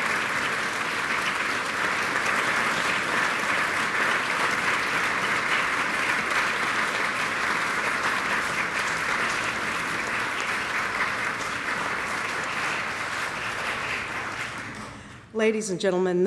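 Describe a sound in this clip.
An audience applauds steadily in a large hall and the applause fades away.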